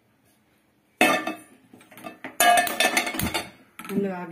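A metal pot clanks down onto a gas burner.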